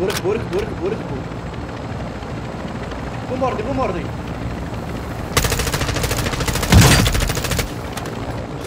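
A helicopter's rotors roar and thump close by.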